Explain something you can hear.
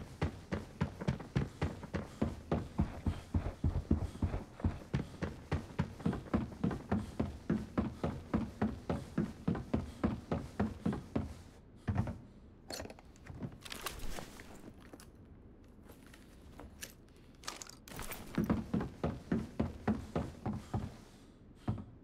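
Footsteps thud on a wooden floor at a steady walking pace.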